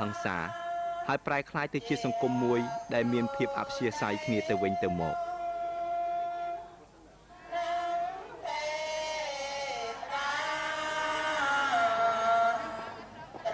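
A crowd of people sings slowly together.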